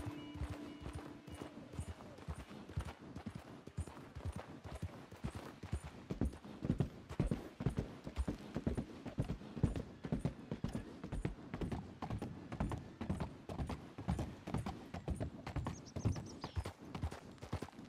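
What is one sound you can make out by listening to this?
Horse hooves clop steadily on a dirt trail.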